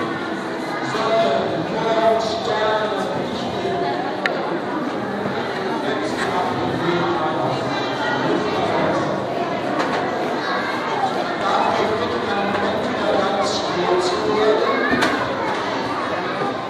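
A crowd of men and women talks and murmurs in a large echoing hall.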